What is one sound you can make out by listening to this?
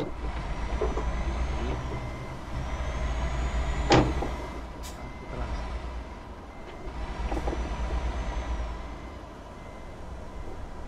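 A truck engine rumbles low and steady, swelling and easing.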